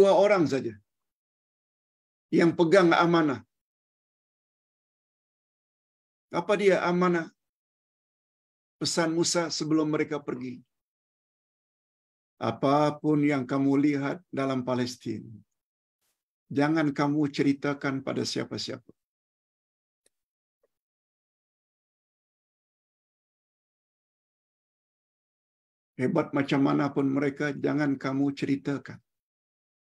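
An elderly man speaks calmly in short phrases with pauses, heard through an online call.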